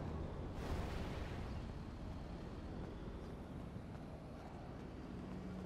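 Footsteps run quickly over pavement.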